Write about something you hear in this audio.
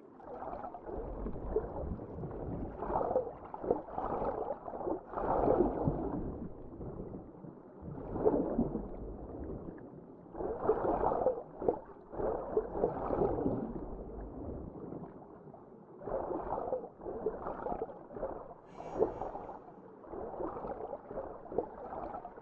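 Water swirls and churns in muffled, repeated surges as a swimmer strokes underwater.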